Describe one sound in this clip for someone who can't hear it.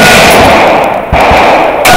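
A paintball gun fires a rapid burst of shots close by.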